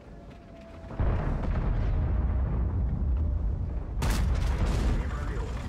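A heavy tank engine rumbles deeply.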